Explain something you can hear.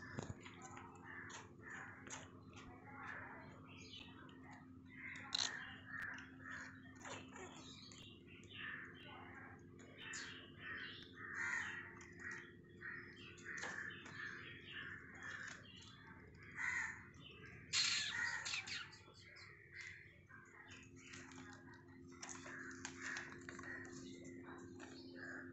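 Dry twigs rustle and scrape close by.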